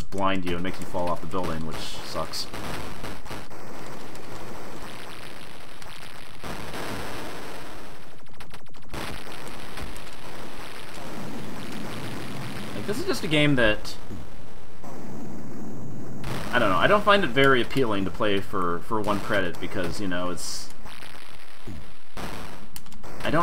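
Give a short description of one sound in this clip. Video game punches thud against a building.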